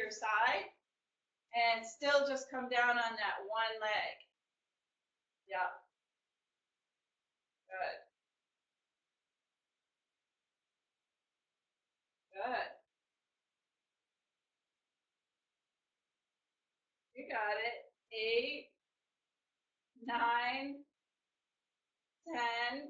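A woman talks calmly and cheerfully close to the microphone, in short bursts with pauses.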